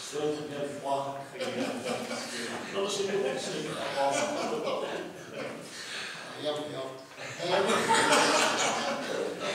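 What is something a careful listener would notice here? Men laugh.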